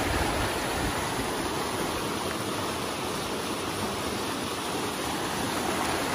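A stream flows and gurgles quickly.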